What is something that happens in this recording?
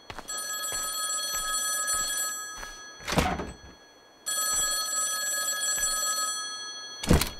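A telephone rings loudly in bursts.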